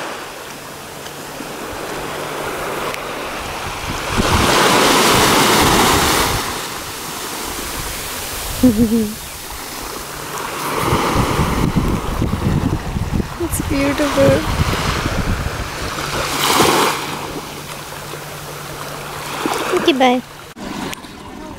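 Small waves wash up and break on a sandy shore.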